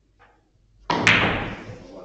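A cue strikes a billiard ball with a sharp knock.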